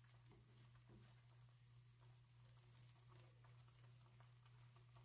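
Eggs and sausages sizzle and crackle in a frying pan.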